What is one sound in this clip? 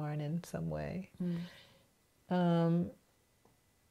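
An elderly woman speaks calmly and thoughtfully close by.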